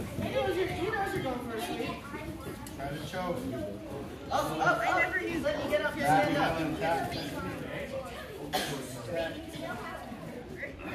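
Children talk and call out nearby in a large echoing hall.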